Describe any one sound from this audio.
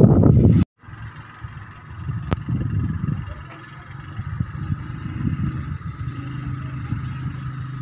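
A motorbike engine hums as it rides past.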